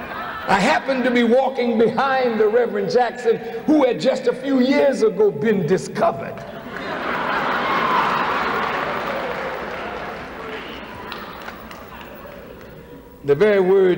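A man speaks forcefully into a microphone in a large echoing hall.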